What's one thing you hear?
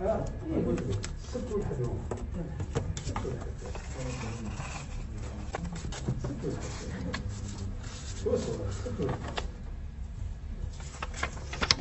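Paper rustles and slides as it is handled.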